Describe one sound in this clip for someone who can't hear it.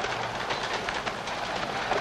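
A wheeled shopping cart rattles and rolls over the pavement.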